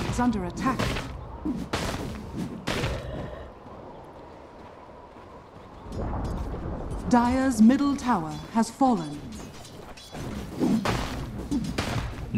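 Game battle effects crash and whoosh in bursts.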